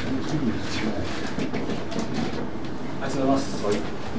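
A marker pen squeaks across a glossy surface.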